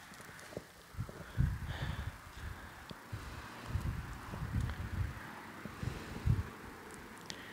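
Wind rumbles outdoors in gusts.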